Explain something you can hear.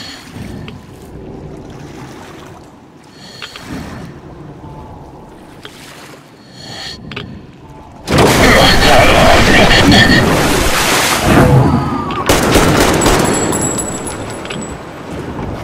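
Water laps and splashes against a small boat.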